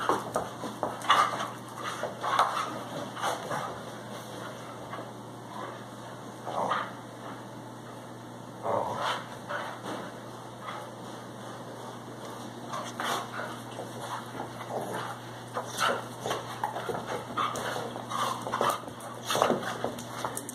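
Dog paws scuffle and thump on a rug.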